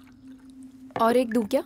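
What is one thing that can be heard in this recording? A young woman speaks nearby.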